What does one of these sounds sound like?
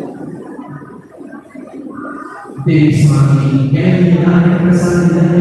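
A man chants through a loudspeaker in a large echoing hall, growing loud and sustained partway through.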